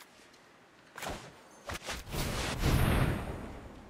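A card game plays a bright magical whoosh as a card is played.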